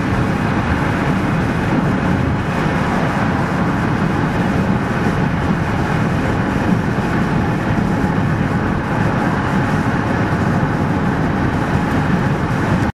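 Car tyres roar steadily on a busy highway.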